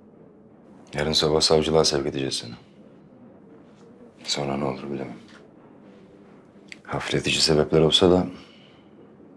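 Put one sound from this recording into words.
A man speaks in a low, calm voice nearby.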